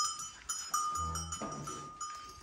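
A calf moos briefly nearby.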